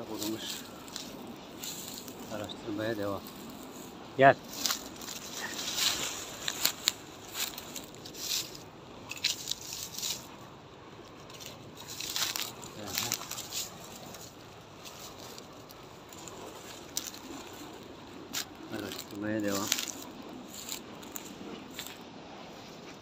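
Footsteps rustle and crunch through dry grass and brush.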